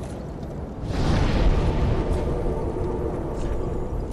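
A fire flares up with a loud rushing whoosh.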